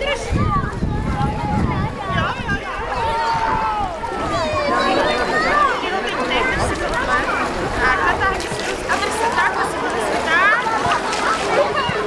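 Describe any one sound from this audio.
Young children shout and squeal excitedly.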